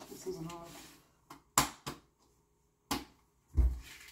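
Dishes clatter and clink on a counter.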